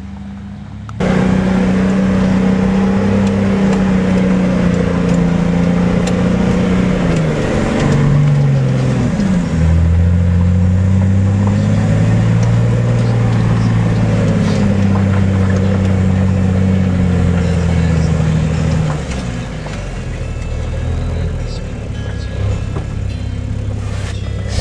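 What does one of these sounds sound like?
A vehicle engine roars loudly, its pitch rising and dropping as it shifts gears.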